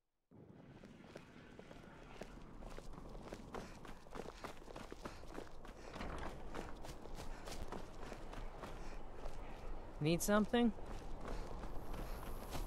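Footsteps tread on stone pavement at a steady walking pace.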